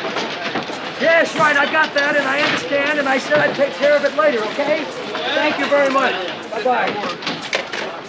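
A man talks nearby.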